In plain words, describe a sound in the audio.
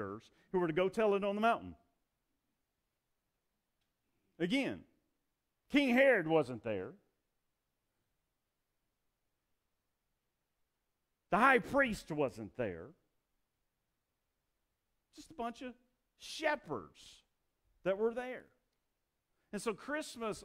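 A middle-aged man preaches with animation through a microphone, pausing between phrases.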